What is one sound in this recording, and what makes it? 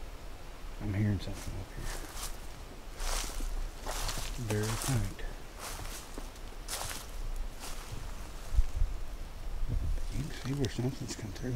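Footsteps crunch through dry leaves on the ground.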